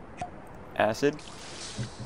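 Acid splashes and sizzles.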